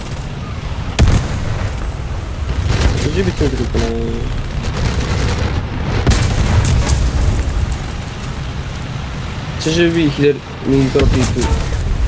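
A tank cannon fires with a sharp boom.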